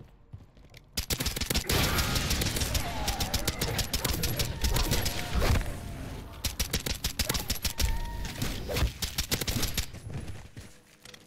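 Rapid gunfire crackles and pops loudly.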